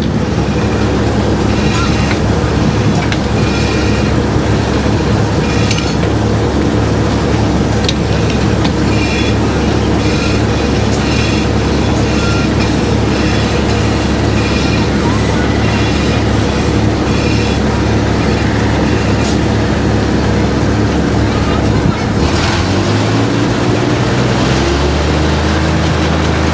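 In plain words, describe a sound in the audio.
A sawmill engine runs with a loud, steady rumble, then shifts pitch near the end.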